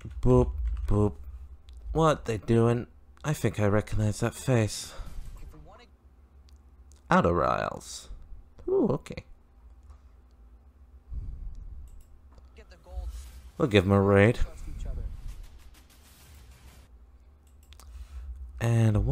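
A young man talks casually and close into a microphone, with pauses.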